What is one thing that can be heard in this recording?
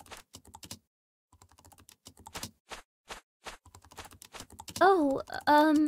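Footsteps tap across a hard floor.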